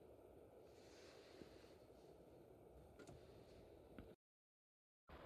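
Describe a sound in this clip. A car engine idles with a low, steady hum, heard from inside the car.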